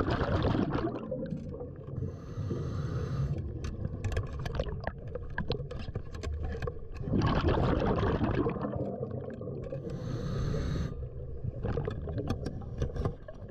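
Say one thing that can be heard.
Water rumbles and churns close by.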